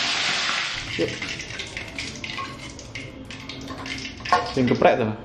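A metal ladle clinks against a wok.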